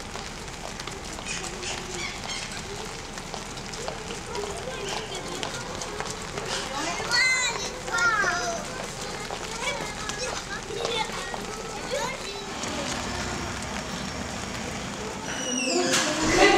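Young children chatter and call out outdoors.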